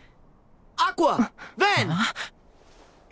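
A young man shouts out.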